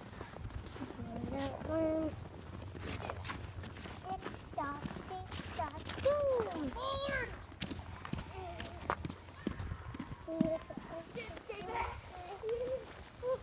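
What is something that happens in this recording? A young boy talks and calls out close by.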